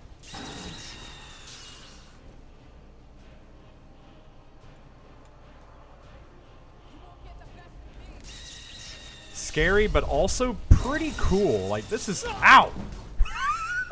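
A magic spell crackles and hums.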